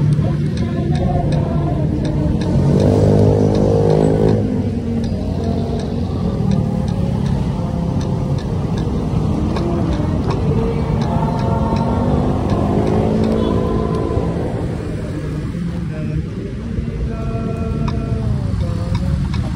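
Traffic passes by on a busy road.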